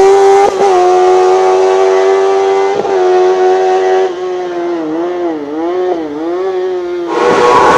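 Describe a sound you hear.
A racing car engine screams at high revs, shifting gears, then fades as the car climbs away.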